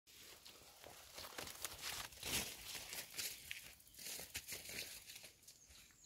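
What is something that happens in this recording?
Wind gusts across open ground, rustling tall grass.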